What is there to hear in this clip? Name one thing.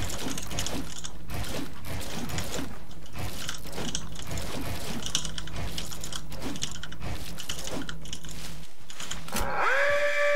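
Keyboard keys click rapidly.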